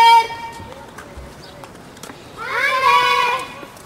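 Footsteps walk on a paved path outdoors.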